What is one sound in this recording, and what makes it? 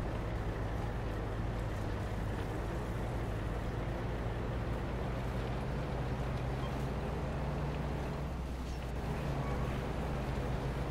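A vehicle engine rumbles steadily.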